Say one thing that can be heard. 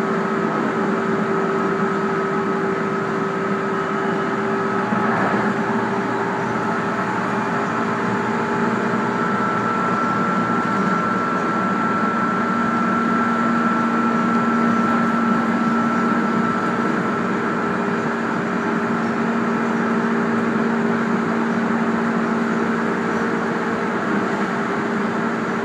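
A train's electric motor whines steadily as it travels.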